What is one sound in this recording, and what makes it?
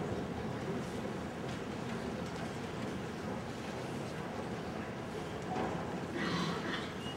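A large crowd murmurs and chatters in a large echoing arena.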